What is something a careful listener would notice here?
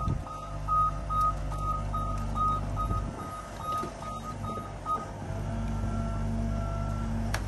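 A heavy machine engine rumbles steadily nearby.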